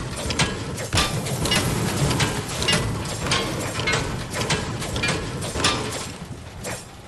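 A pickaxe strikes a metal truck with repeated ringing clangs.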